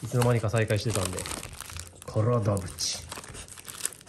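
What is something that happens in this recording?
Paper wrapping crinkles as it is handled.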